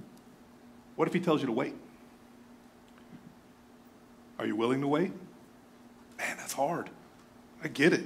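A middle-aged man speaks slowly and calmly into a microphone, with long pauses.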